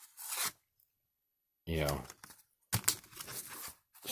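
Stiff cards rustle and tap as a hand handles them.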